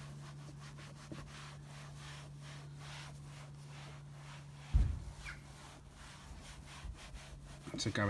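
A damp sponge rubs and squeaks along a car door.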